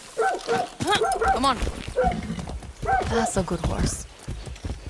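A horse's hooves thud steadily as it gallops.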